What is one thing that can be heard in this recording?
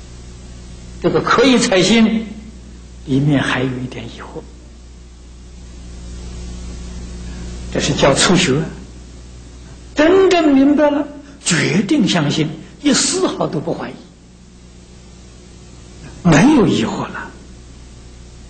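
An elderly man speaks calmly through a microphone, in short phrases with pauses.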